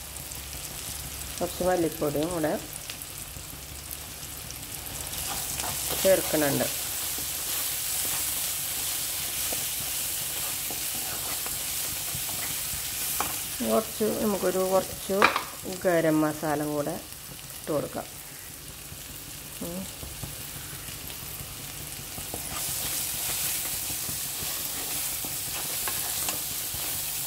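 Food sizzles in a hot pan.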